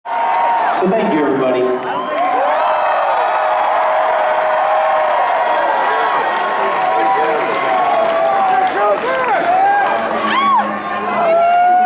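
A distorted electric guitar plays a fast, wailing solo through loud amplifiers.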